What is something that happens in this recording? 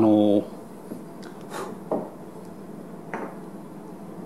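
A glass piece is set down on a wooden table with a light knock.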